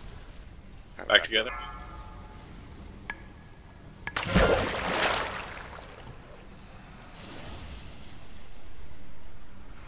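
Magic spells burst and crackle in quick succession.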